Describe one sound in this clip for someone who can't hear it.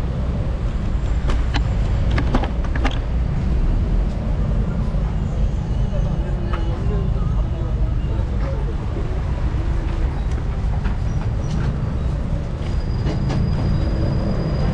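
A low rumble of city traffic fills the air.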